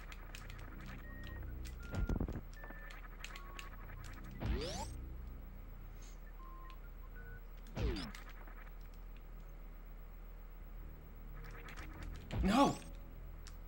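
Electronic video game music plays softly with short beeping notes.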